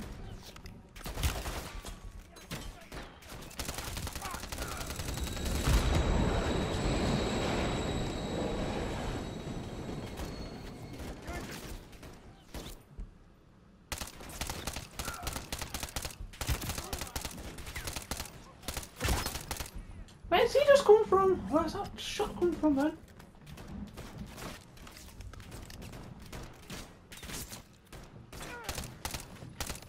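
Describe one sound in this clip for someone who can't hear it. Rapid bursts of automatic gunfire crack and echo.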